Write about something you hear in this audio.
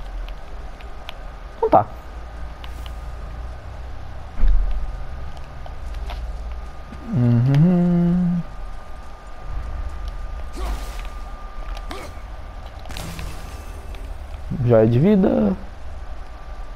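Heavy footsteps crunch on stone and gravel.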